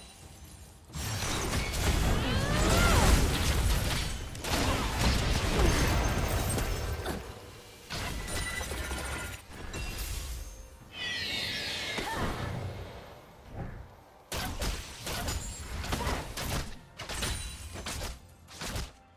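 Video game spell effects whoosh and crash in bursts.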